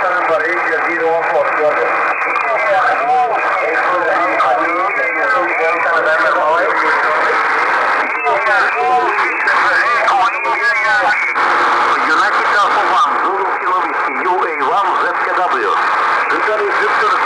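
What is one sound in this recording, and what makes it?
A man talks through a crackling shortwave radio loudspeaker.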